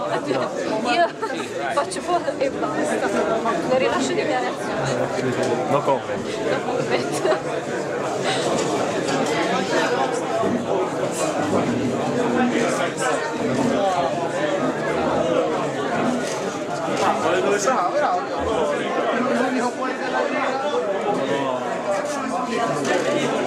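A crowd of men and women chatter all around in a room.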